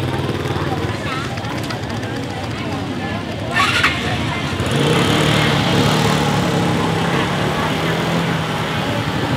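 Women chatter nearby outdoors.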